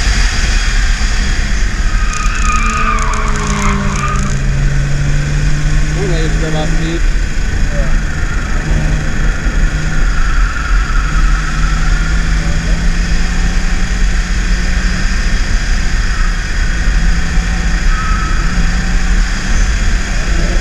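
Wind and road noise rush loudly around the car.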